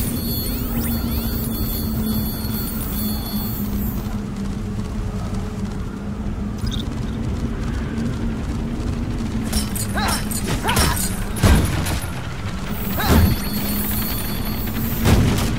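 Steady electronic music plays throughout.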